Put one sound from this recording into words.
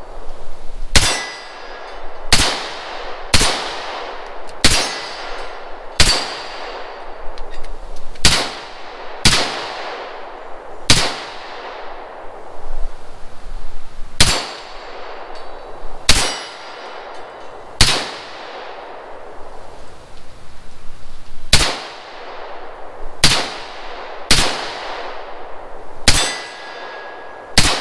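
A rifle fires single loud shots outdoors, each echoing away.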